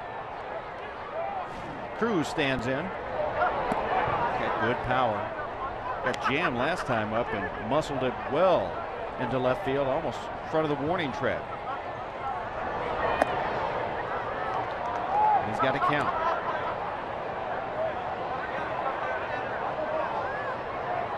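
A crowd murmurs in a large outdoor stadium.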